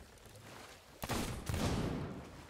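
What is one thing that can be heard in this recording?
A gun fires a loud blast.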